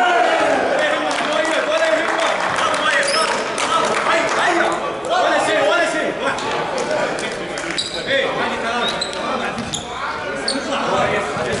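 Several men talk and call out across a large echoing hall.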